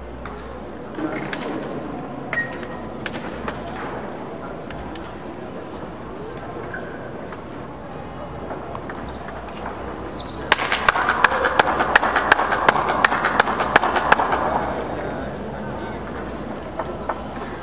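Table tennis balls click sharply off paddles and tables in a large echoing hall.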